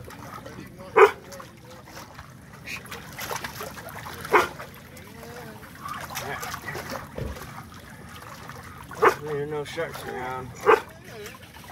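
Water splashes as a fish thrashes close by.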